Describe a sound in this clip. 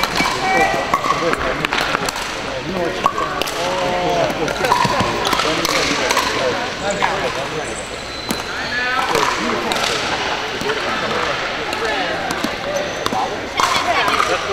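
Paddles smack plastic balls with sharp pops in a large echoing hall.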